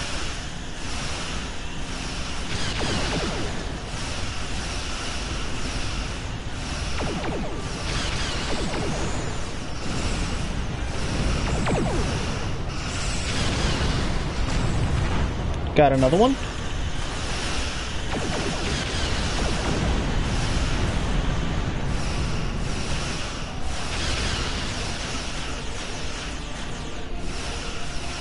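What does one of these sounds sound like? A deep engine rumble hums steadily.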